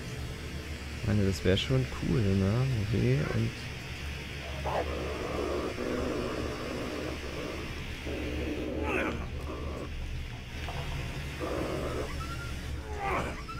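A flare hisses and sputters steadily.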